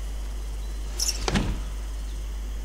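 A child knocks on a wooden door.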